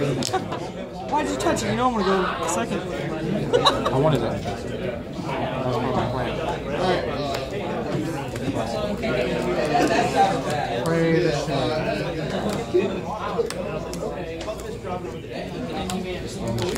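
Playing cards are tapped and slid onto a table.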